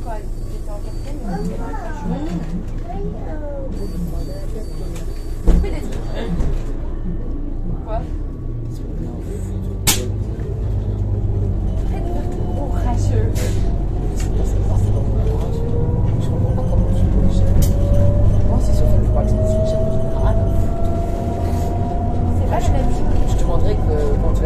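A car engine rumbles low and steady, heard from inside the car.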